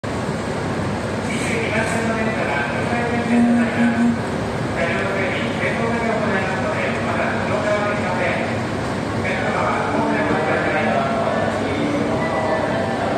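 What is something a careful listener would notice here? A stationary electric train hums steadily beside a platform.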